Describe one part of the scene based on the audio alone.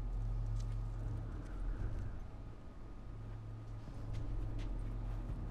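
Footsteps crunch softly on snow.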